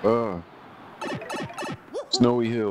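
Sparkling chimes twinkle briefly.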